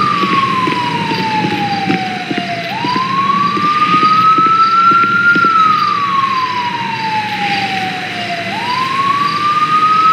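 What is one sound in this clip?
A siren wails, rising and falling slowly.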